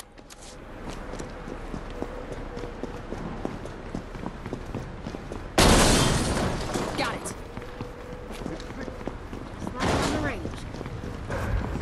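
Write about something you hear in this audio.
Footsteps tap on a hard floor as a game character runs.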